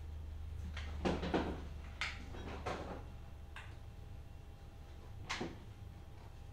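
A refrigerator door opens and thuds shut.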